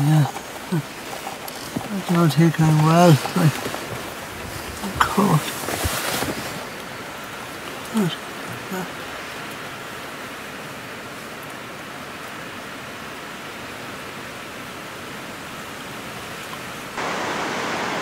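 Rain patters steadily on a car's roof and windows.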